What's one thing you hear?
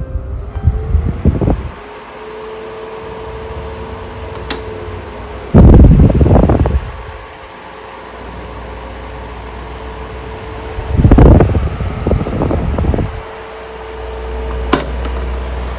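An electric fan whirs with a steady hum.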